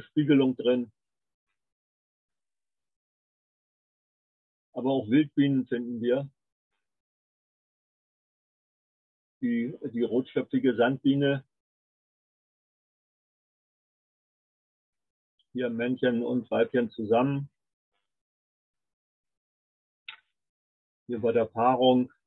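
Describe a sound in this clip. An elderly man talks calmly in bursts over an online call.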